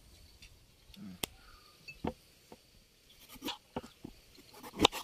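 A fruit knocks and rolls on a wooden board.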